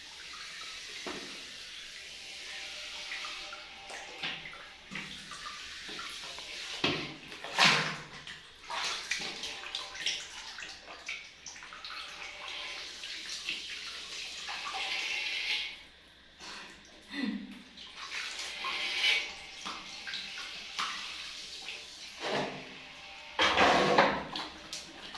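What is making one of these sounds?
Water splashes in tubs.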